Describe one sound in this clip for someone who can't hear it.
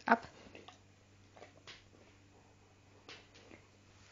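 A dog licks and chews a treat close by.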